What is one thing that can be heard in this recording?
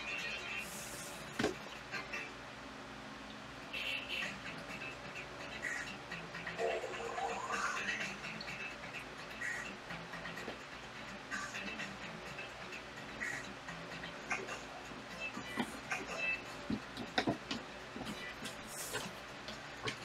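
Video game sounds play from a television speaker.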